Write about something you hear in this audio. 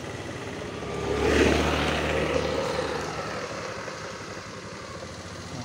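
A motorbike engine approaches, passes close by and fades into the distance.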